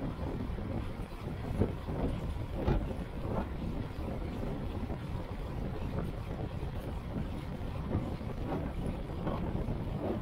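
Bicycle tyres hum on a paved road.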